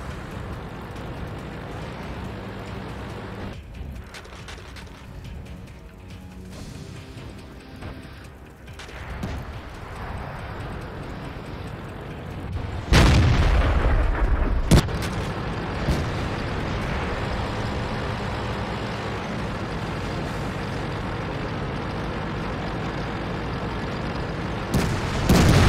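A tank engine rumbles low and steadily.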